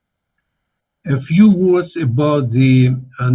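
An elderly man speaks calmly through an online call microphone.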